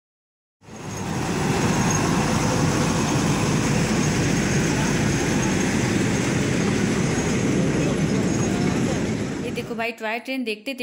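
A small train rumbles and clatters past on its tracks.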